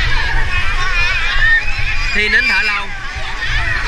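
Water splashes as a child kicks and swims.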